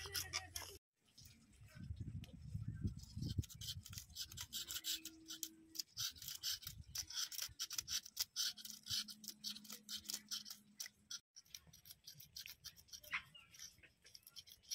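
A knife scrapes and scratches fish against a hard floor.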